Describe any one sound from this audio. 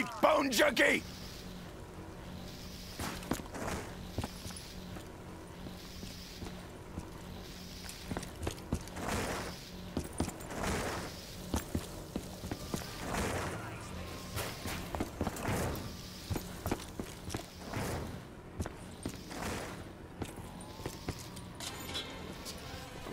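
Footsteps run steadily over hard ground.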